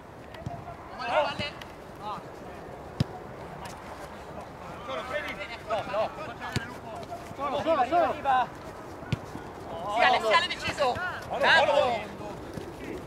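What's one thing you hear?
Men shout to each other outdoors at a distance.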